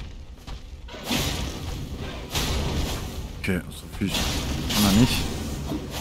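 A sword swings and strikes with sharp, heavy hits.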